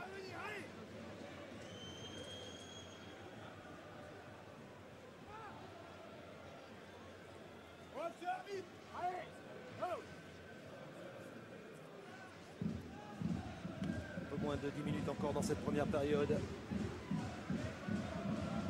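A large stadium crowd murmurs and chants in the distance.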